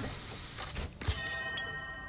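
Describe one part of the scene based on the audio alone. A bright magical chime rings out and shimmers.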